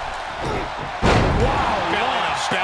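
A body slams down hard onto a wrestling mat with a heavy thud.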